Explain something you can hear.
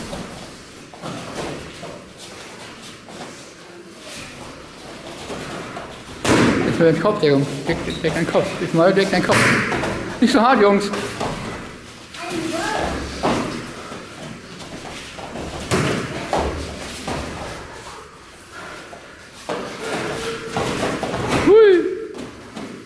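Kicks and punches thud against gloves and bodies.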